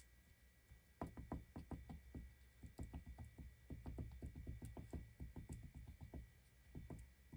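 A foam ink dauber taps quickly and softly against paper.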